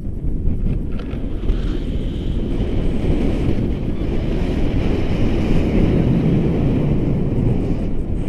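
Wind rushes loudly past the microphone in flight.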